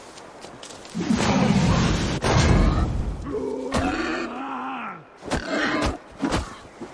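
A large boar charges and grunts.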